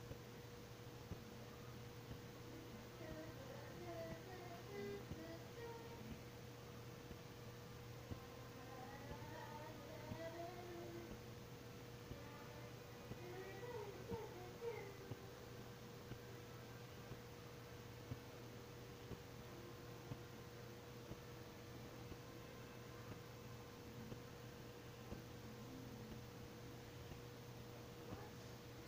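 Quiet menu music plays through a television speaker.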